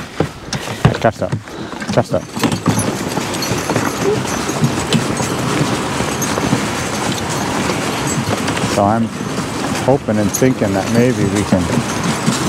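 Harness chains jingle and rattle.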